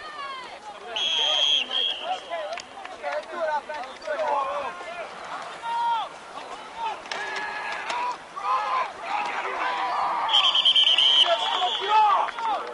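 A referee's whistle blows sharply outdoors.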